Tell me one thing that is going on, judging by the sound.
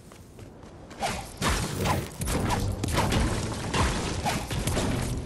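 A pickaxe strikes a wall with sharp, repeated knocks.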